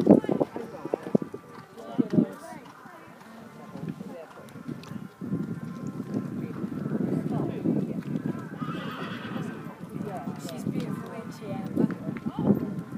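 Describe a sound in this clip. A horse canters on a soft arena surface, hooves thudding in the distance.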